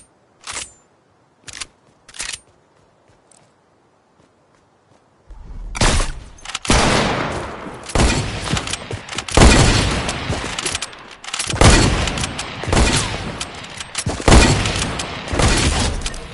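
Gunshots ring out again and again, each with a booming echo.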